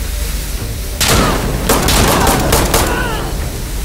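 Pistol shots fire in quick succession, ringing in an echoing concrete space.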